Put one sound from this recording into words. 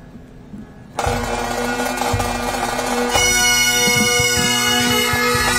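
Bagpipes play a loud, droning tune.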